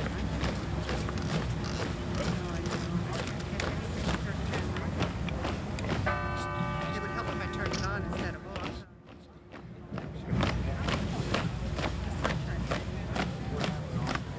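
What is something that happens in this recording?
A marching band plays drums and brass outdoors.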